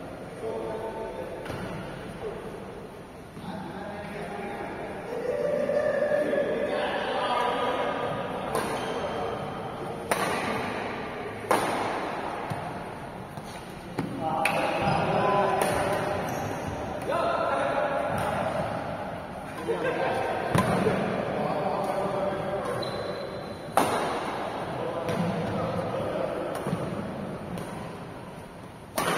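Men talk and call out in a large echoing hall.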